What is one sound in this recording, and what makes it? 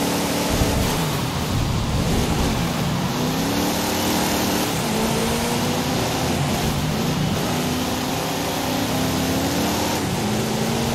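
A muscle car engine roars, its pitch rising and falling as it shifts gears.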